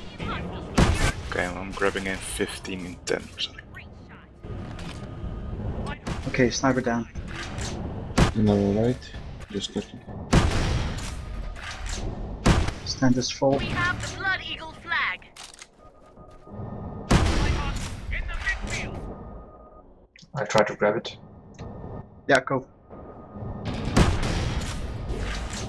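Explosions boom loudly in a game.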